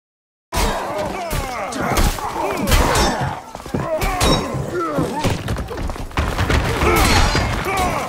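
Swords clash and clang in a fierce fight.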